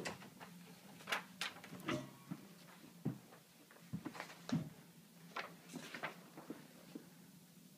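Clothes hangers clack and scrape along a rail.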